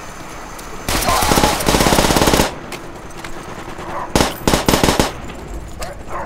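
Gunfire bursts from an automatic rifle in rapid loud bursts.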